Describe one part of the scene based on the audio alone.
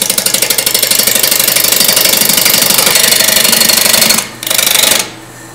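A wood lathe hums as it spins.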